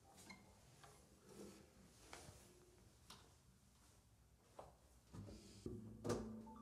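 Footsteps knock on a hard floor and move away.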